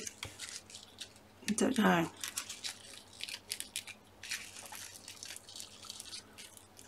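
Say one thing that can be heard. Paper rustles and crinkles as it is pressed and handled.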